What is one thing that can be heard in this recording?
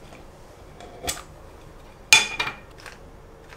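A metal tin lid pops open with a sharp clink.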